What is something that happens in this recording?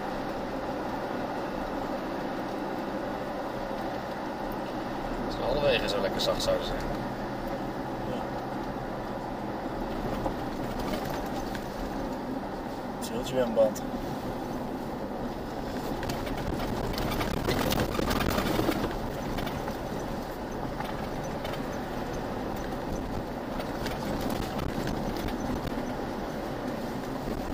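Tyres rumble and crunch over a sandy dirt track.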